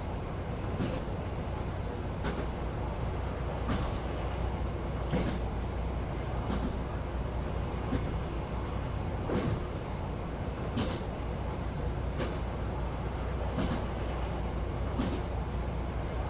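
A train engine rumbles steadily from inside the cab.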